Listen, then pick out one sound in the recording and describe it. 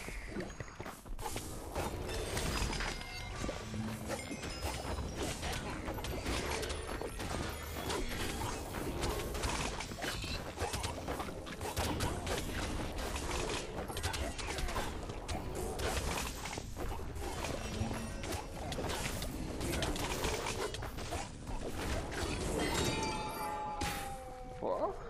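Game combat sounds clash and burst with spells and hits.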